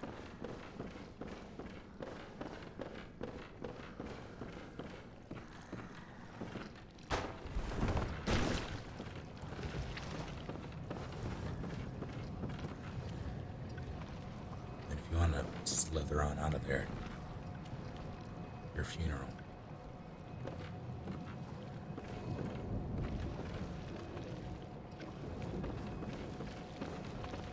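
Footsteps tap steadily on a hard stone floor.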